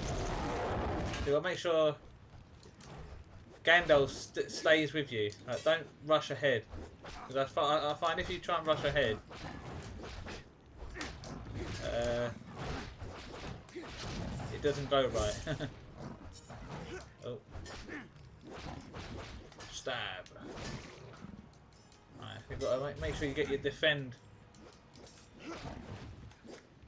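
Swords clash and clang in a fierce melee.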